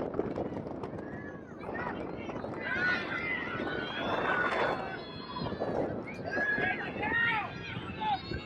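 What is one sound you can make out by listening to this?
Spectators cheer and call out from the sideline.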